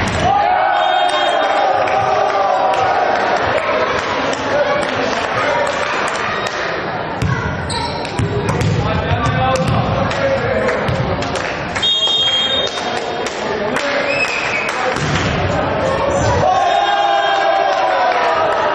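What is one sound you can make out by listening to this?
A volleyball is struck hard by hand.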